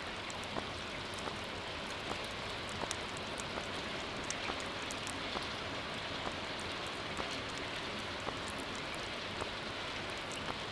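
Short soft clicks tick every second or so as a game menu scrolls.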